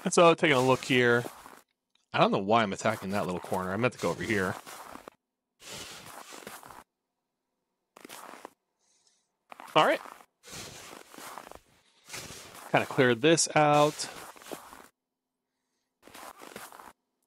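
A shovel scrapes and pushes snow.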